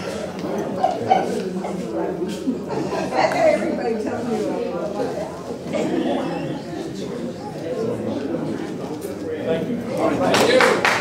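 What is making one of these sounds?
People talk and laugh nearby.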